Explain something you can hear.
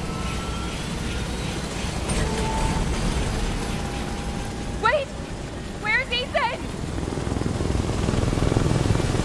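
An aircraft engine rumbles low and steady.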